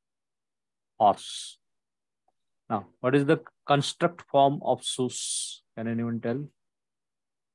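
A man speaks calmly into a microphone, as if over an online call.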